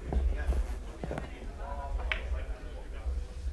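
Snooker balls knock together with a crisp clack.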